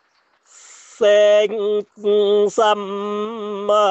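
A young woman sings a long, wavering note close to a microphone.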